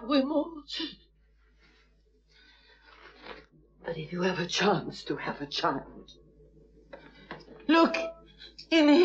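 A man sobs and cries out in anguish.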